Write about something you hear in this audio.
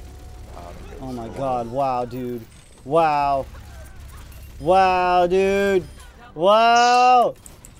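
A young man shouts and cheers with excitement into a close microphone.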